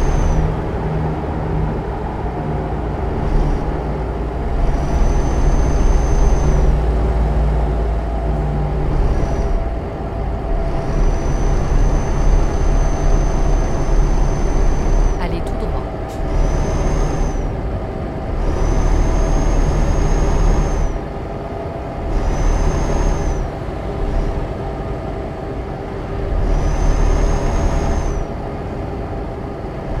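A truck engine drones steadily while driving on a highway.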